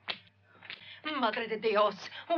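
A woman cries out loudly nearby.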